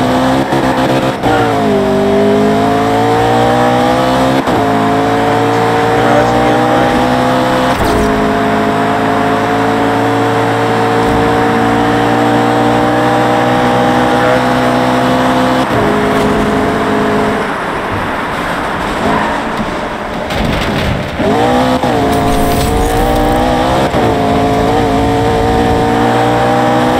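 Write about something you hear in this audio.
A race car engine roars at high revs, dropping in pitch with each gear change.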